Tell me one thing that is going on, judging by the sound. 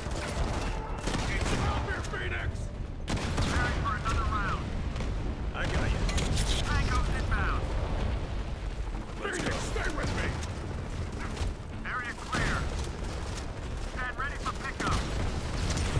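A sniper rifle fires sharp shots.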